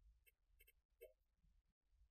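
A short electronic chime sounds as a task is completed.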